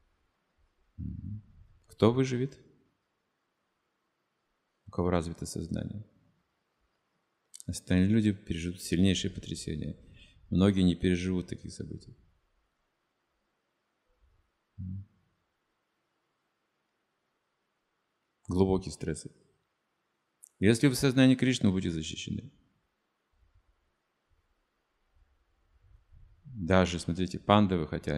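An elderly man speaks calmly into a microphone, pausing often.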